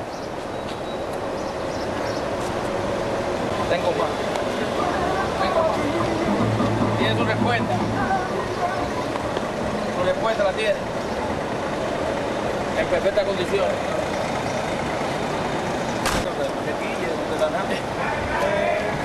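Men talk with animation nearby, outdoors.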